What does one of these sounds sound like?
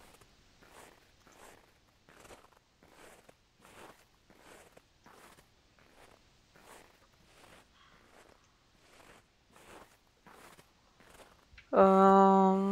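Footsteps crunch steadily over snowy ground.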